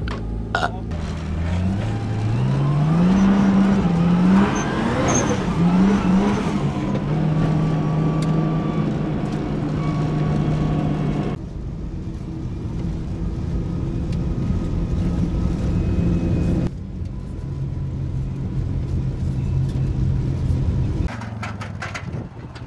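A car engine revs up and roars while driving.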